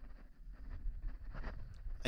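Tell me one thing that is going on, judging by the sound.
A climber's hands scrape and slap against rock.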